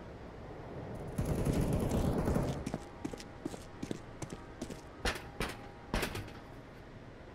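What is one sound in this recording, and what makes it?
Footsteps tread quickly on a hard floor.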